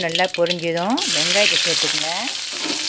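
Chopped onions hit hot oil with a loud, steady sizzle.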